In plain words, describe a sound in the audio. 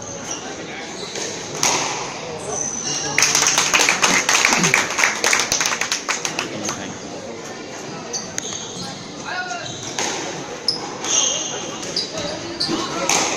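A squash ball smacks sharply against the walls, echoing in a large hard room.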